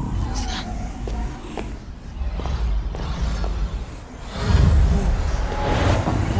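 A magical portal rumbles and crackles steadily.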